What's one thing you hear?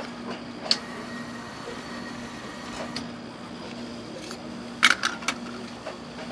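Metal spatulas scrape and tap on a cold metal pan.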